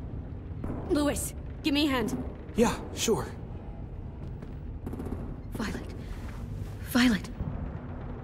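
A young man calls out a name anxiously.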